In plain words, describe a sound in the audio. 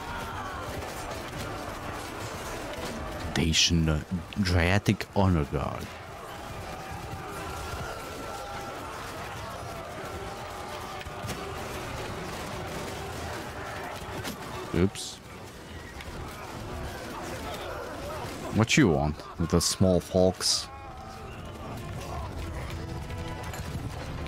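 A battle crowd roars and clashes steadily.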